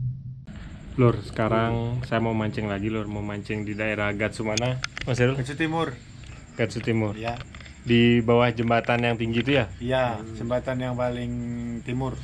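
A young man talks calmly, close to the microphone.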